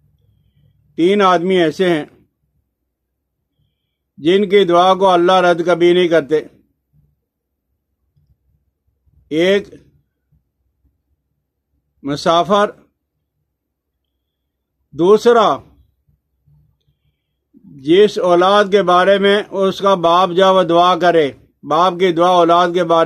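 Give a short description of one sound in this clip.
An elderly man speaks slowly and calmly, close to the microphone, with long pauses.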